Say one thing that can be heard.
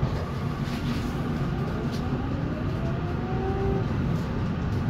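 A tram's motor whines, rising in pitch as it speeds up.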